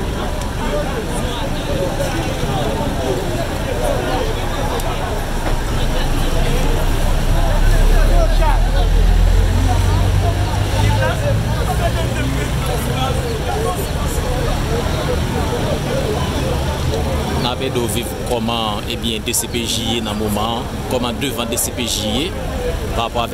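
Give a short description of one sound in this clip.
Street traffic hums steadily in the background.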